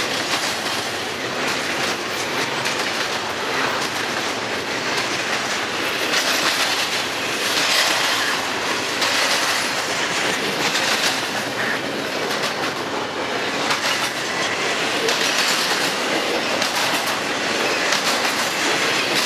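A freight train rumbles past steadily and loudly close by.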